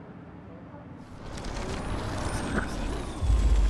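A warbling rewind whoosh swells and grows louder.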